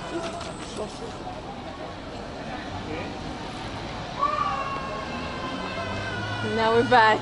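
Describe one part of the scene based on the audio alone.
People talk in the distance in an open street.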